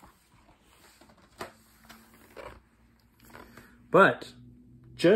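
Paper pages rustle as a book is handled.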